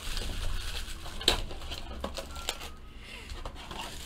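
Cardboard scrapes as a box lid is opened.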